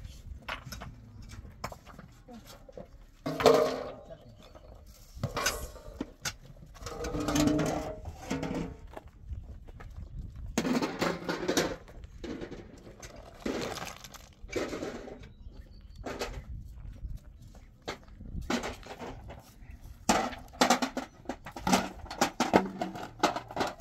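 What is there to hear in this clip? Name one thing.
Footsteps scuff on gravel and dry ground outdoors.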